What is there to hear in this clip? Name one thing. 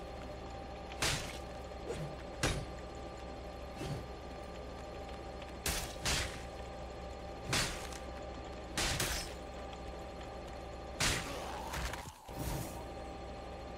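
Sharp weapon blows strike again and again.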